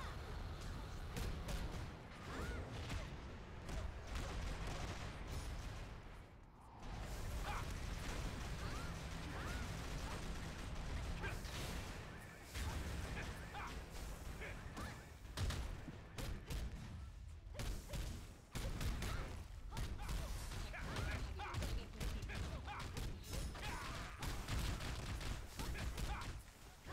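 Heavy blows and clangs of weapons strike repeatedly.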